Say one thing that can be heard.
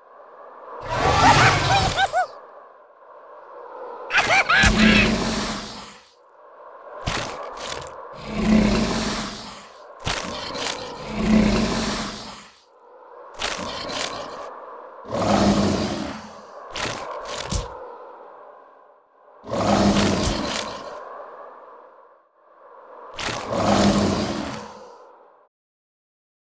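Heavy thumps and whooshes come in bursts as a rag doll is knocked about.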